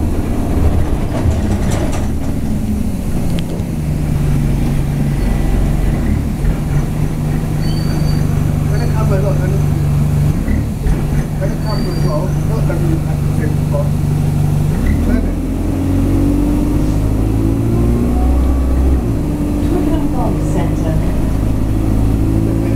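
A vehicle's engine hums steadily as it drives along.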